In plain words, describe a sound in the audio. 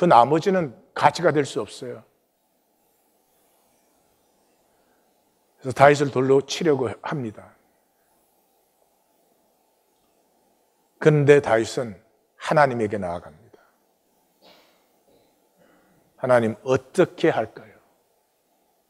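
An elderly man speaks slowly and earnestly into a microphone, with long pauses.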